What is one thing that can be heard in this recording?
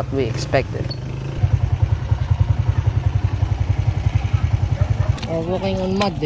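A motorcycle engine putters close by.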